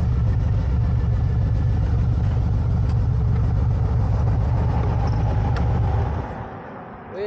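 A motorcycle engine rumbles loudly close by, then cuts off.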